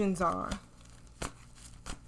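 Cards shuffle in a woman's hands.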